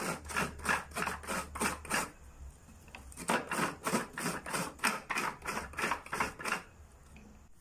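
A knife chops rapidly against a wooden cutting board.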